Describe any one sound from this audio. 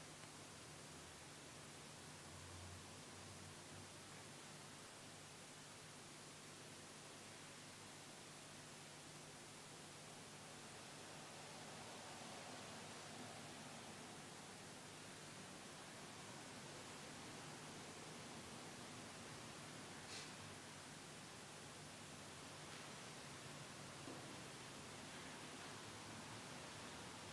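A man murmurs a low chant in the distance, in an echoing hall.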